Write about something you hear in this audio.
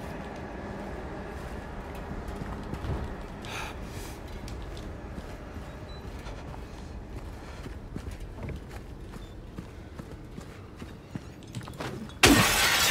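Footsteps scrape on hard ground.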